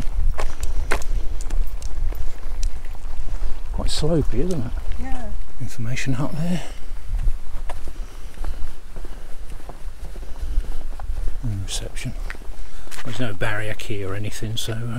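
Wind rumbles against the microphone outdoors.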